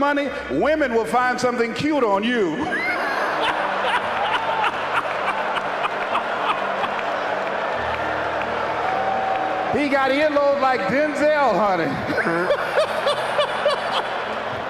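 A man speaks forcefully through a microphone to a large audience.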